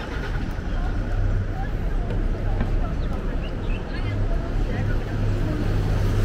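A diesel city bus rumbles as it approaches.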